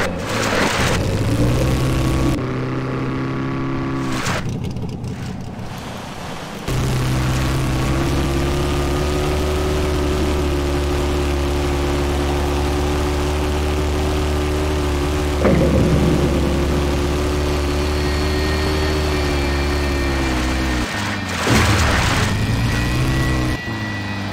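A buggy engine drones steadily, revving up and down.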